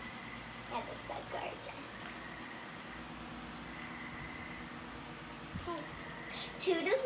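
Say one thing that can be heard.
A young girl speaks playfully close by.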